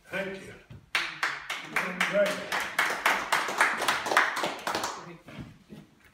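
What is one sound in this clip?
A small group of people clap their hands.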